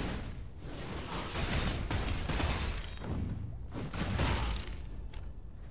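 Weapons clash and spells burst loudly in a fight.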